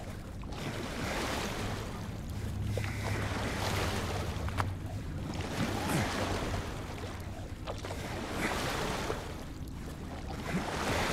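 Wooden oars knock and creak in their oarlocks.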